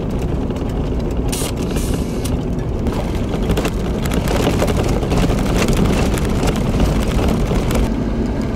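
Tyres crunch and rattle over a gravel road.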